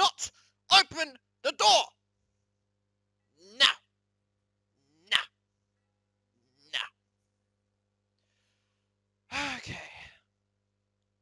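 A young man speaks close into a headset microphone in short bursts.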